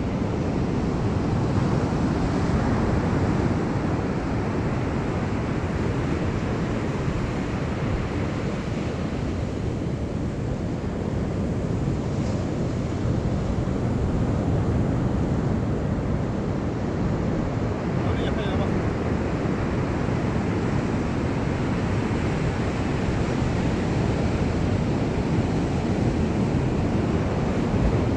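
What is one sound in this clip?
Wind blows hard outdoors, rumbling steadily.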